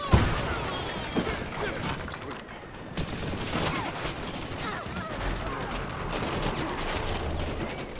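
Shots crackle and pop as they hit targets.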